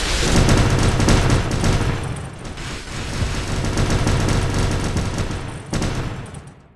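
Explosions thunder loudly.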